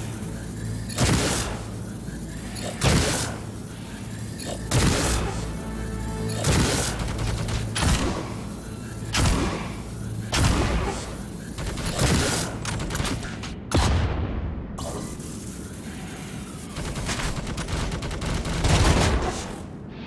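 A heavy gun fires loud single shots, one every couple of seconds.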